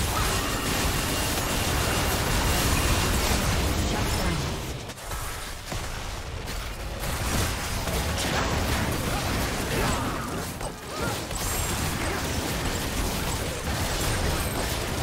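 Magic blasts and impacts crackle and boom in a busy game battle.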